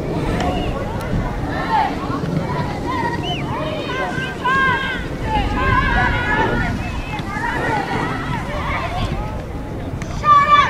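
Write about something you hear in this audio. Young women shout and call to each other across an open outdoor field.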